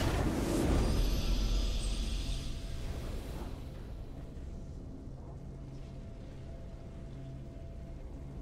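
A triumphant victory fanfare swells and then fades.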